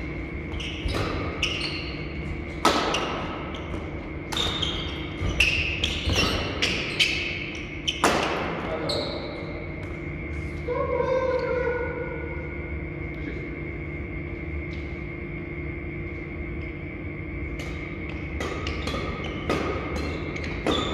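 Badminton rackets sharply strike a shuttlecock, echoing in a large hall.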